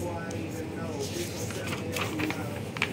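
A stiff paper page rustles as it is turned by hand.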